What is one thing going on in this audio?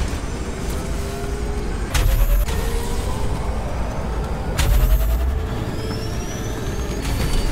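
A motorbike engine roars at high speed, its pitch rising and falling.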